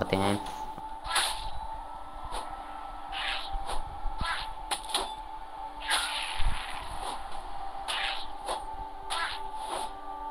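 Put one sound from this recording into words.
A weapon whooshes through the air in quick swings, again and again.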